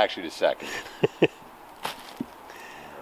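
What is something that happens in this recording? Dry leaves crunch underfoot as a man walks.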